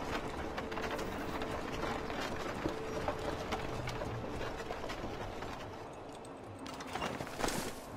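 A horse-drawn carriage rumbles and rattles along.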